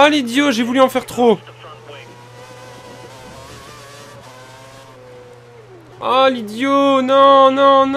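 A racing car engine screams at high revs, dropping in pitch with each gear change.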